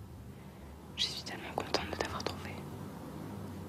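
A man whispers softly close by.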